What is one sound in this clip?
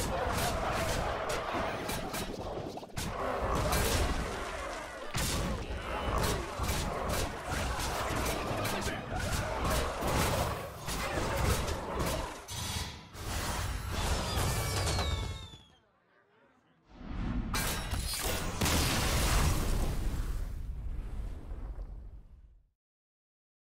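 Video game fighting effects crash, zap and clash.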